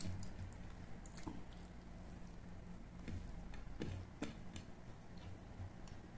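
Fingers squelch and mix soft rice close by.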